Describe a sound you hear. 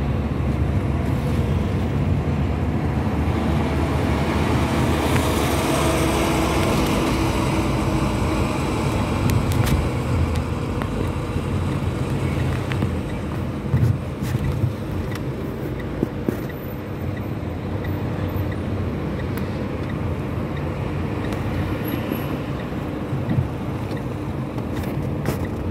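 A car engine hums steadily from close by.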